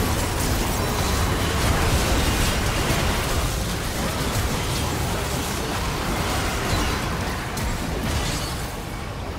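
Game spell effects crackle and explode in a hectic fight.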